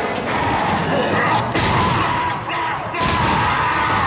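A gun fires sharp energy blasts.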